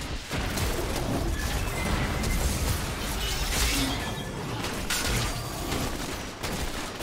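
Magical blasts and clashing sound effects burst rapidly during a fight.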